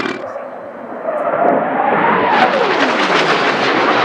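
A jet engine roars loudly as a fighter jet passes and its pitch falls.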